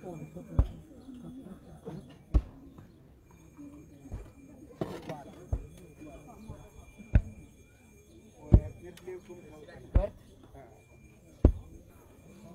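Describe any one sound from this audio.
A digging bar thuds into hard earth at a steady pace.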